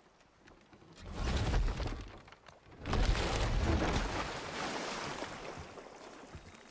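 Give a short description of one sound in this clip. A heavy wooden boat scrapes and grinds as it is pushed.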